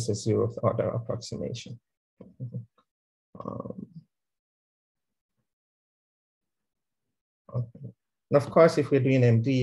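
A man explains calmly through a microphone, with pauses.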